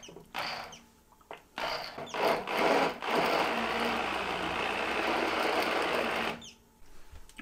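An immersion blender whirs in bursts, churning soup in a pot.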